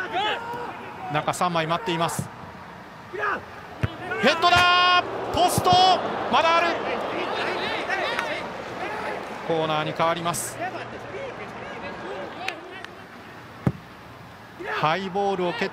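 A large stadium crowd murmurs and cheers in the open air.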